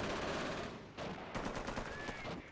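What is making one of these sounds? Battle explosions boom and rumble.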